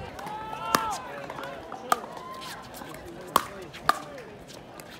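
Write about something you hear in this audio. Paddles hit a plastic ball with sharp hollow pops.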